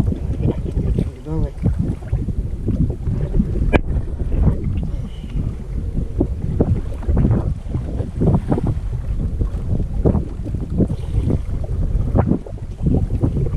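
A man talks calmly up close.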